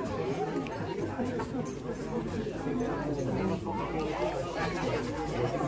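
A crowd of men and women chatter nearby.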